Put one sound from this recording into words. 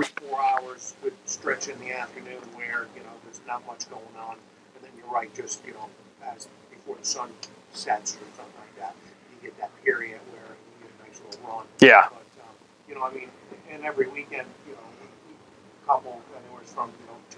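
A man speaks calmly and clearly, a few steps away.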